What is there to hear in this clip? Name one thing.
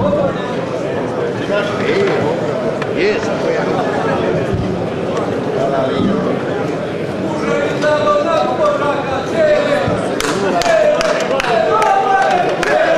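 A man speaks with animation into a microphone, heard over loudspeakers in a large hall.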